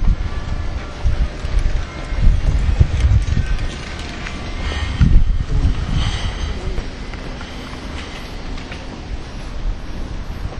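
Footsteps scuff on a stone path.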